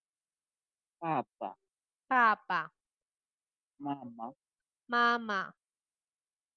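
A woman reads out words slowly and clearly over an online call.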